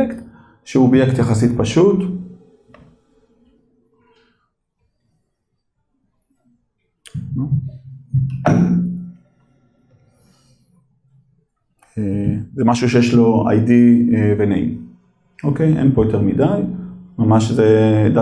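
A man speaks calmly through a microphone, pausing now and then.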